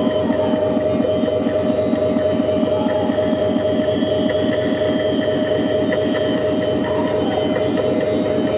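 Crisp electronic clicks tick in a quick, even rhythm.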